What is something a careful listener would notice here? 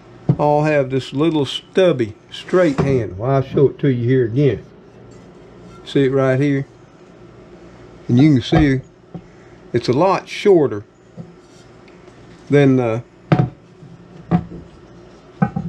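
A heavy metal pan is set down on a hard counter with a dull clunk.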